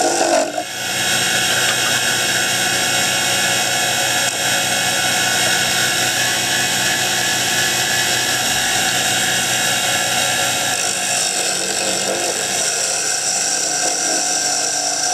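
Sandpaper hisses against hardwood spinning on a lathe.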